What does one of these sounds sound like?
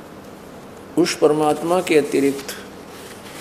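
An elderly man speaks slowly into a microphone, close by.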